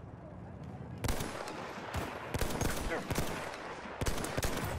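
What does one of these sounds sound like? Rifle shots crack sharply, several in quick succession.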